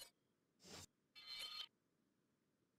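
A game menu beeps and chimes as it opens.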